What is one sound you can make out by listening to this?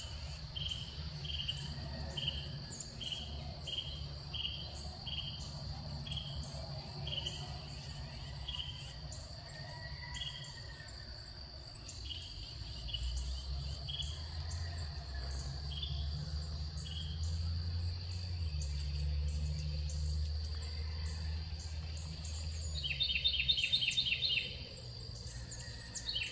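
Small birds chirp nearby outdoors.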